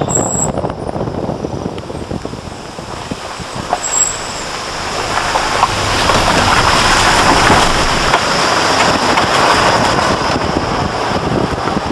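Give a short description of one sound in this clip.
A vehicle engine rumbles steadily while driving on a rough road.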